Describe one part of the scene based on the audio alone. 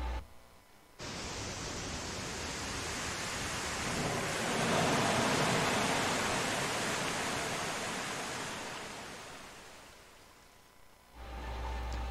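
Water rushes and churns loudly through a channel.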